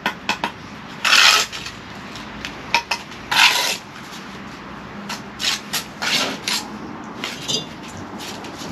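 A bricklayer's trowel scrapes mortar on brick.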